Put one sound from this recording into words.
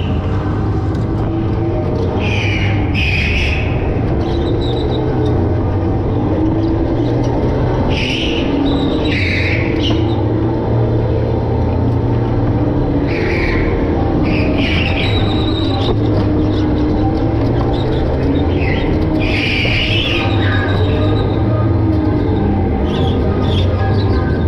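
A go-kart engine buzzes loudly and steadily up close.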